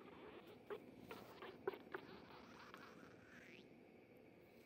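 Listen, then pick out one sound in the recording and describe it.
A cat gives a long, rising meow.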